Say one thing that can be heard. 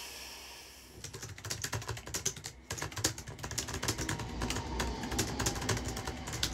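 Fingers tap on a computer keyboard.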